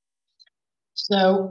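A man speaks calmly over an online call microphone.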